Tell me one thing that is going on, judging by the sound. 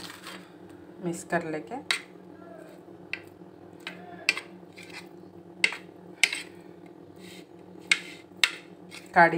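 A metal spoon clinks and scrapes against a ceramic plate.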